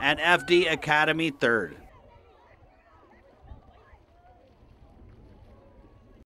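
Paddles splash in shallow water.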